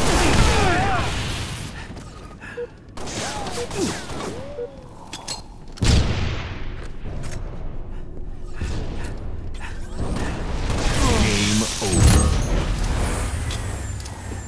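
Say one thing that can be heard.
An energy blade hums and swishes.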